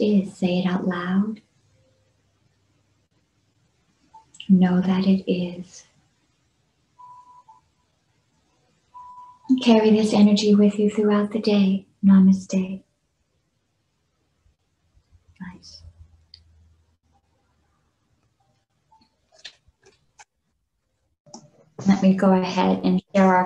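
A middle-aged woman chants long, steady tones close to a microphone, heard over an online call, with pauses between them.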